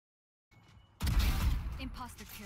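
A rifle fires a rapid burst of loud shots.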